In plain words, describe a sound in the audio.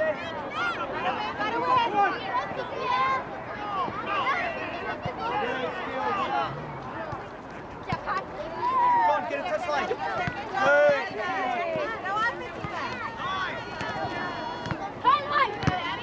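A soccer ball is kicked with dull thuds.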